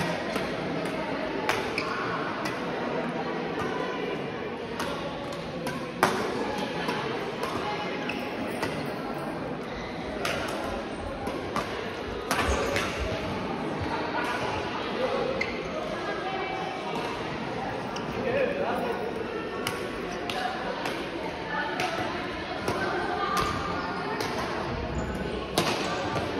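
Rackets hit a shuttlecock with sharp pops, echoing in a large hall.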